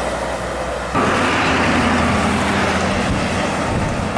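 Truck engines rumble on a road.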